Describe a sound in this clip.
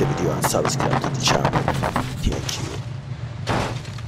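A car tumbles down a slope with heavy thuds.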